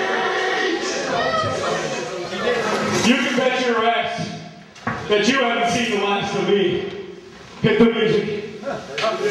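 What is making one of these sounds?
A young man speaks loudly into a microphone, heard through a loudspeaker in an echoing hall.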